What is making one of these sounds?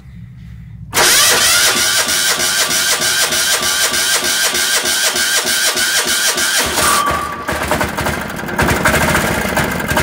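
A small engine runs loudly close by.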